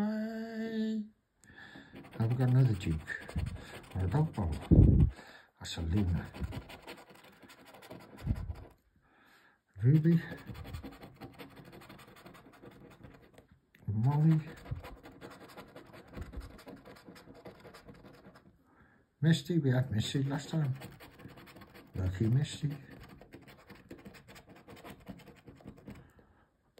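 A plastic scraper scratches across a card with a dry rasping sound.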